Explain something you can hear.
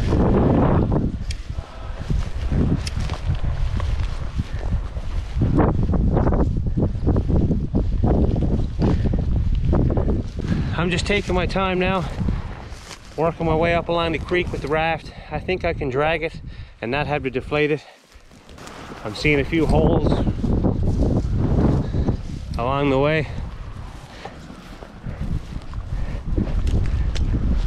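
Strong wind buffets a microphone outdoors.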